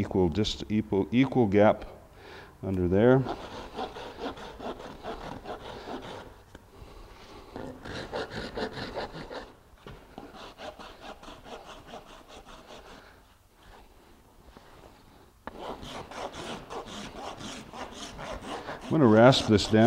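A metal file rasps back and forth across a horse's hoof in quick strokes.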